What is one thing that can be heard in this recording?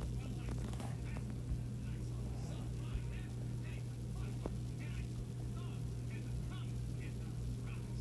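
Blocks are set down with soft, muffled thuds.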